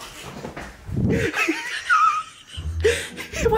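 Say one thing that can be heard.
A woman laughs loudly up close.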